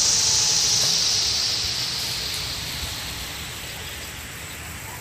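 A small model engine whines nearby and fades away.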